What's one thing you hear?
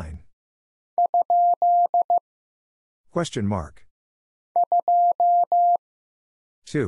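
A Morse key taps out short and long beeps of a steady tone.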